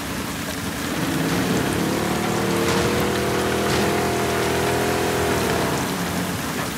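An outboard motor starts and hums steadily.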